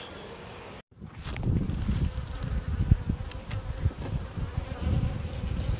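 A wooden hive lid scrapes and knocks as it slides open.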